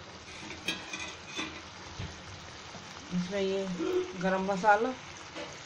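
A thick sauce bubbles and simmers gently in a pan.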